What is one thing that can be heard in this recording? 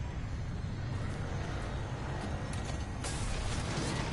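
A metal door lever is pulled with a clunk.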